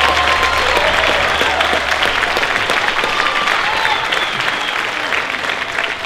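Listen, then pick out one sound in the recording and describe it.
Children cheer and shout excitedly.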